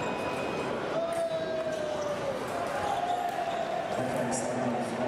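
Fencers' shoes squeak on the floor.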